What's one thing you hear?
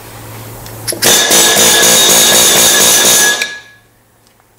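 A pneumatic air hammer rattles loudly against metal.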